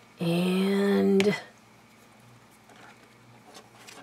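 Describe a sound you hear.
A small plastic bottle is set down on a hard surface with a light tap.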